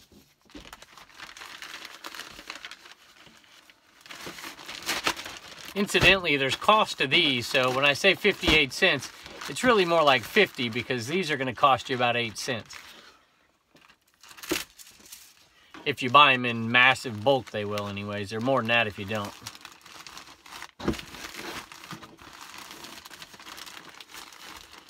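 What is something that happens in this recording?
A plastic mailing bag rustles and crinkles as clothing is pushed inside.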